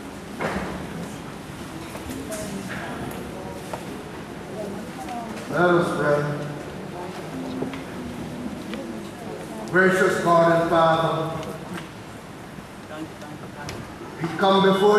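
An elderly man speaks slowly and calmly through a microphone and loudspeakers in an echoing hall.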